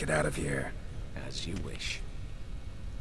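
A second man answers calmly.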